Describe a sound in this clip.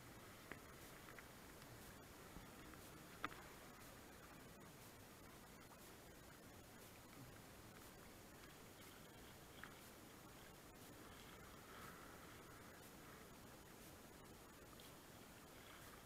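River water rushes and ripples steadily close by.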